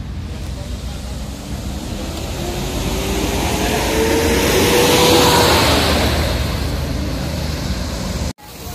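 A bus engine revs and roars as the bus pulls away and drives past.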